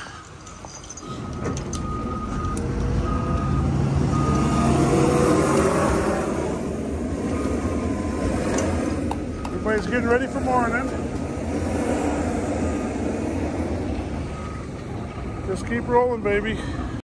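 A heavy diesel engine rumbles steadily nearby.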